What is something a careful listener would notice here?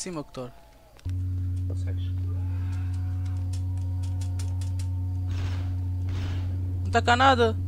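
A laser sword hums with a steady low drone.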